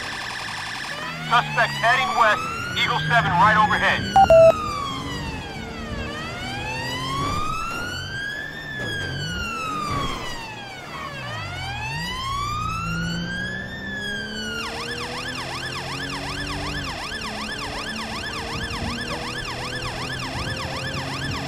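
A police siren wails, switching between different tones.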